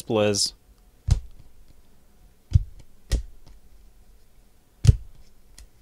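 Stiff cards are flicked and knocked together by hand, with sharp taps now and then.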